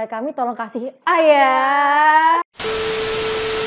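Two young women laugh loudly.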